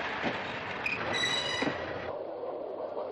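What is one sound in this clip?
A train horn blares.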